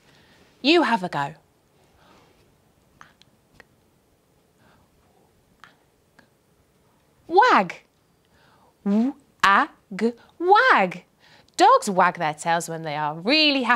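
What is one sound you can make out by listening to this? A young woman speaks with animation close to a microphone, with long pauses.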